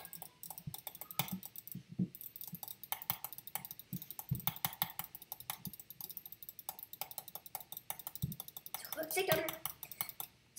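Quick clicking sounds tap rapidly and unevenly.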